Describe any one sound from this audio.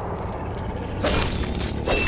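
A blade whooshes and clangs in a burst of game effects.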